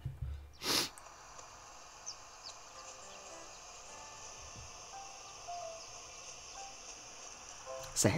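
A handheld game console plays soft music and chimes through its small speaker.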